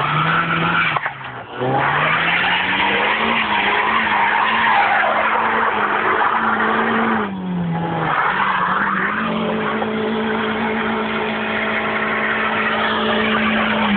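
A car engine hums and revs up and down nearby.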